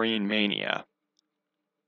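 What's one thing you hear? A young man speaks casually into a headset microphone, close by.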